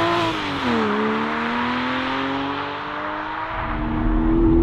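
A sports car engine revs and fades as the car drives away along a road.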